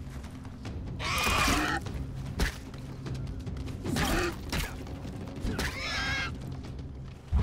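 A wild animal snarls and squeals.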